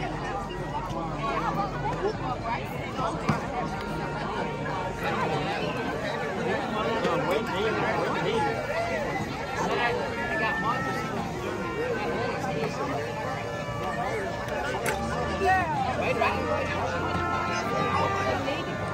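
A marching band plays brass instruments.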